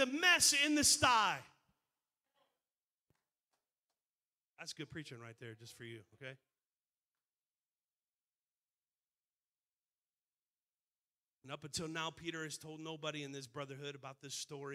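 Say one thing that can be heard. A middle-aged man speaks with animation into a microphone, heard over a loudspeaker.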